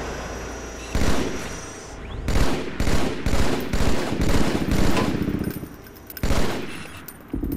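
A video game sniper rifle fires sharp, booming shots.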